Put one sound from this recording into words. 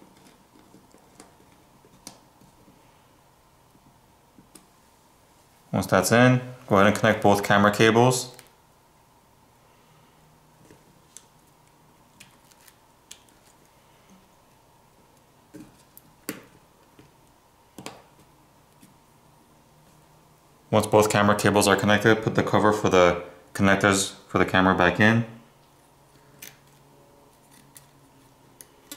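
Small plastic and metal parts click softly as they are handled.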